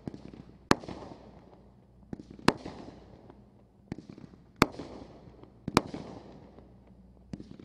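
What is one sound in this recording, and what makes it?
Fireworks whoosh upward as they launch.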